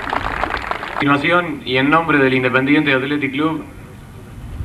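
A young man speaks loudly into a microphone, heard through loudspeakers outdoors.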